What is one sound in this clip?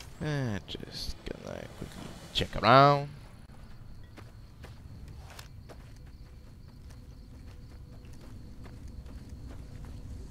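Footsteps run quickly over dry, gravelly ground.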